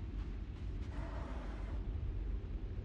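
A heavy wooden crate scrapes along the floor.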